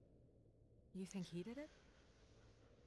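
A woman asks a question in a worried voice.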